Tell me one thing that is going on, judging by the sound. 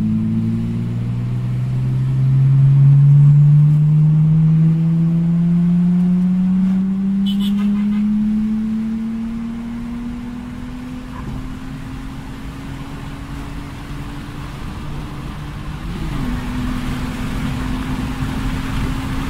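Tyres roll on an asphalt road.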